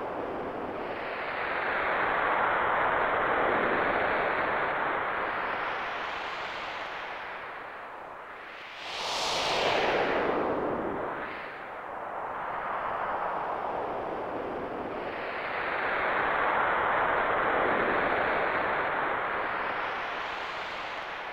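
A waterfall roars steadily, swelling and easing in waves.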